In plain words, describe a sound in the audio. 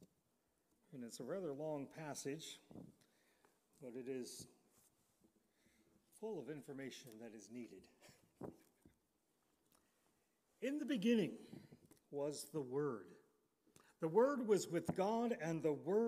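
An elderly man speaks slowly and calmly through a microphone.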